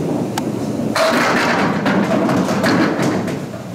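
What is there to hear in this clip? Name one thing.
Bowling pins crash and clatter in an echoing hall.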